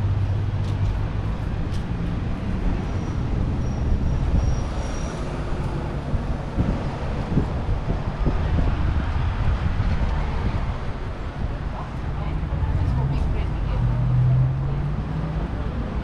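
Footsteps tap on paved ground.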